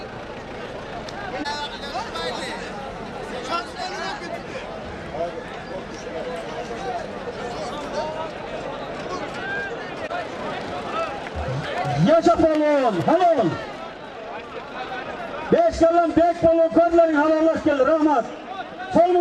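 A large crowd of men murmurs and calls out outdoors.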